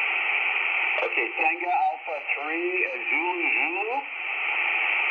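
A radio briefly gives out warbling, garbled tones through its loudspeaker.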